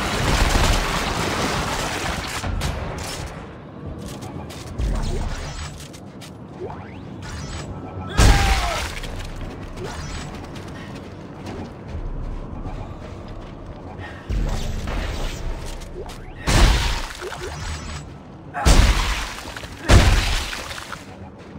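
Gunshots blast sharply with a ringing echo.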